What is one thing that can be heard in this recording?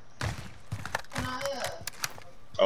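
A rifle rattles as it is handled.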